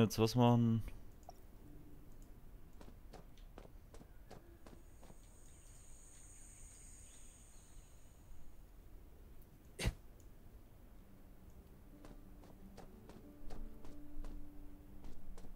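Footsteps crunch on gravel at a steady pace.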